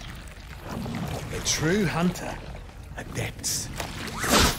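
A young man speaks tensely, close by.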